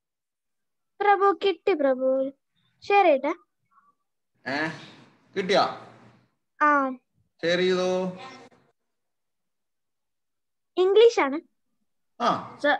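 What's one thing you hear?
A boy speaks with animation over an online call.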